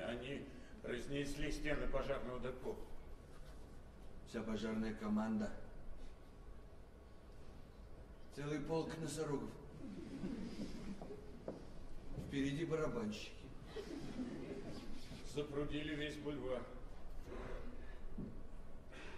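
A man speaks loudly and theatrically in a hall, in short bursts with pauses.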